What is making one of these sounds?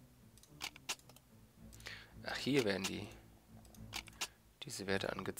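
Short interface clicks sound a few times.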